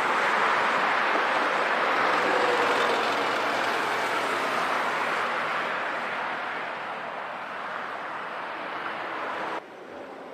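A vehicle engine idles nearby.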